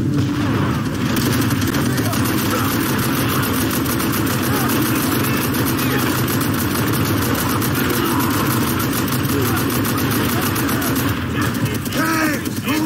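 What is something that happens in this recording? A heavy machine gun fires long rapid bursts close by.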